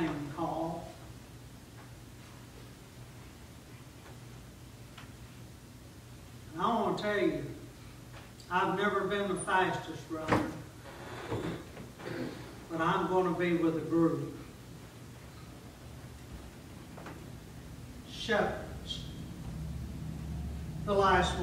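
A middle-aged man speaks slowly and calmly into a microphone, with pauses.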